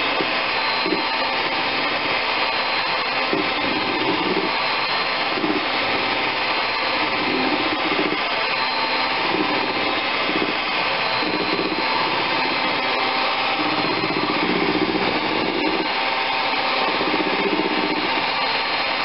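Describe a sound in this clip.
Mixer beaters whisk and rattle against a bowl.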